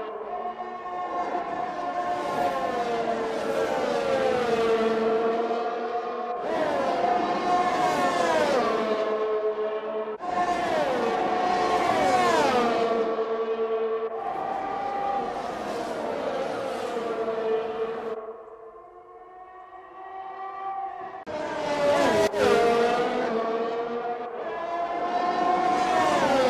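A racing car engine screams at high revs and drops in pitch as it shifts gears.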